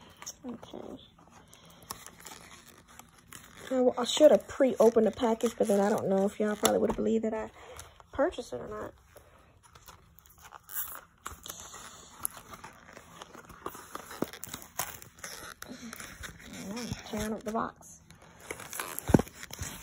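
Paper and cardboard rustle and tap as a box is handled.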